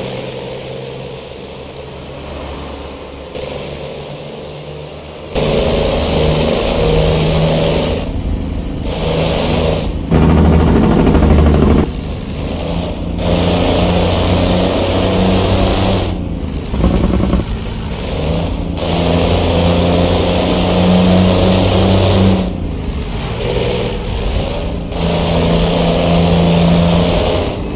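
A heavy truck engine drones steadily, rising and falling in pitch as it changes gear.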